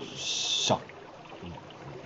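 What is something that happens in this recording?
A young man speaks briefly and quietly.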